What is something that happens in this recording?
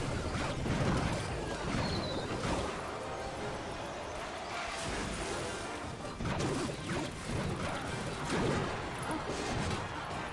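Game battle sounds clash and thump with quick effects.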